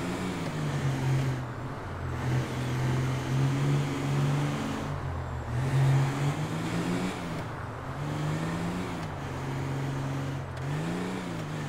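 A car engine hums steadily and rises and falls in pitch.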